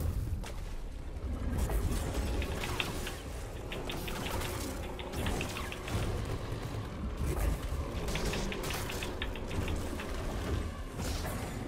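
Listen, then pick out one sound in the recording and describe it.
Lightsabers hum and swish through the air.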